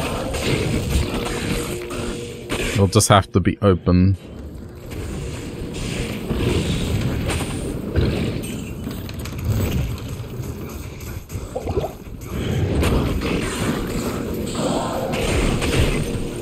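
Weapons clash and monsters shriek in a fight.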